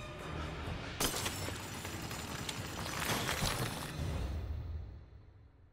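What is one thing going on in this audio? A creature shatters with a loud crackling burst.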